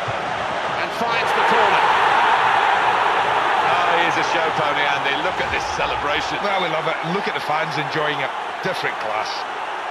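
A stadium crowd roars loudly in cheer.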